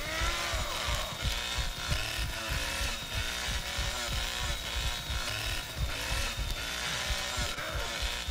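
A chainsaw revs loudly.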